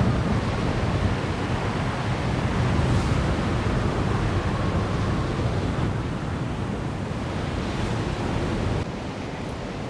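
Wind blows steadily across open hills.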